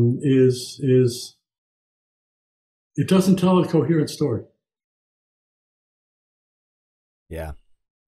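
An elderly man speaks calmly over an online call.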